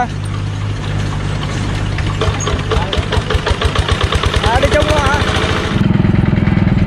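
A small diesel engine idles, then speeds up into a rapid chugging.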